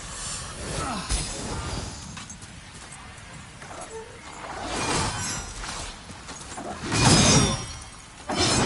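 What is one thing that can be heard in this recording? Blades strike flesh with heavy thuds.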